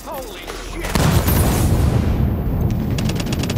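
An explosion booms with a deep roar.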